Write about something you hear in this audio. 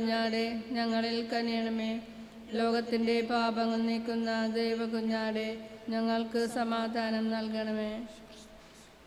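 A man chants in a steady sung voice through a microphone.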